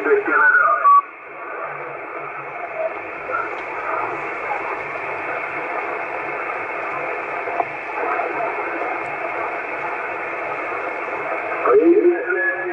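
Radio static hisses steadily between transmissions.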